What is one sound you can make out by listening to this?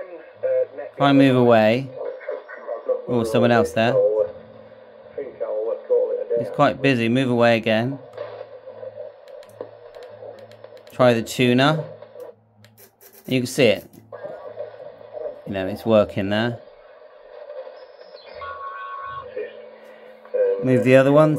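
A man's voice comes in bursts through a radio loudspeaker, with a crackly, tinny tone.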